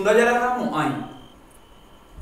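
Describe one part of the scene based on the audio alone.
A boy calls out loudly.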